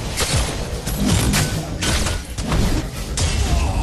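Explosions rumble loudly.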